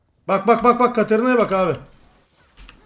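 A young man speaks loudly and with animation, close to a microphone.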